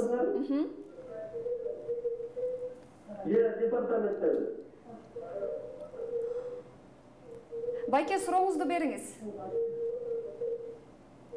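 A young woman speaks calmly and clearly into a microphone close by.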